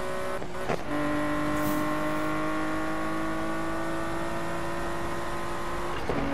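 A racing car engine roars at high speed and shifts gears.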